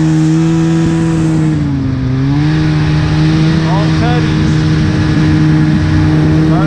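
A snowmobile engine drones steadily, with a brief dip in pitch.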